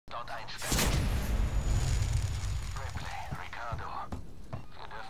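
A flamethrower roars as it shoots fire.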